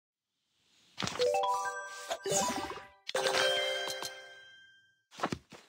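Bright chiming jingles ring out in quick runs.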